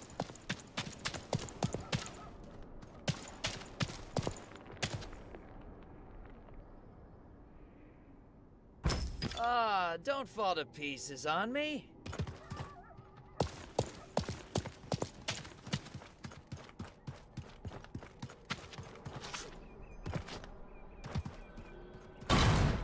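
Footsteps tap quickly on stone floors.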